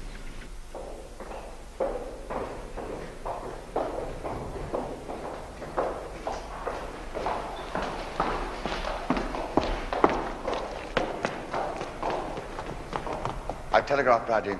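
Footsteps tap on a hard stone floor in an echoing hall.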